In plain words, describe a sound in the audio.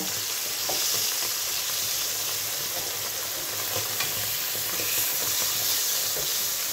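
Bread sizzles and fries in hot oil.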